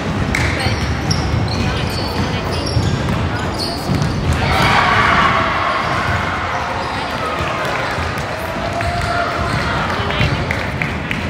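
Young players shout and call out in a large echoing gym.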